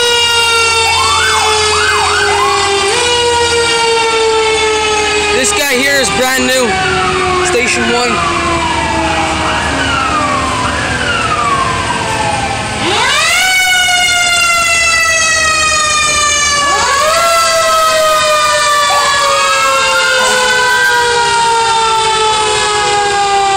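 Fire truck sirens wail loudly close by, rising and falling.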